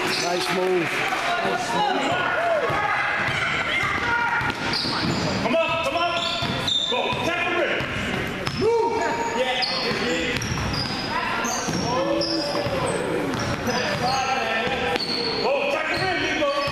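Children shout and call out across the court.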